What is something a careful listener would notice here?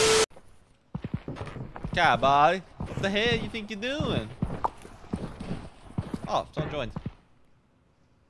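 A young man talks casually into a nearby microphone.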